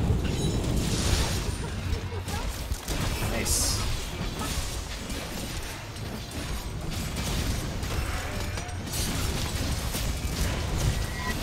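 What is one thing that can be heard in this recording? A huge monster stomps heavily.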